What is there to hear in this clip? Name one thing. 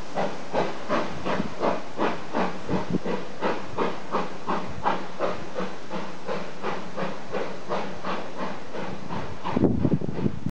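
A steam locomotive chuffs in a steady rhythm in the distance.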